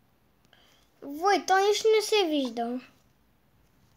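A young boy speaks with animation close to a microphone.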